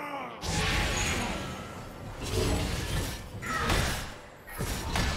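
Magic blasts and sword hits crackle and thud in a fast game battle.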